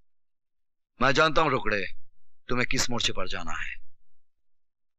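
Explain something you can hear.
A man speaks firmly close by.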